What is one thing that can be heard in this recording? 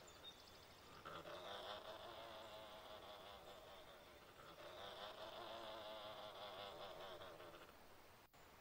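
A large dinosaur growls with a deep, rumbling roar.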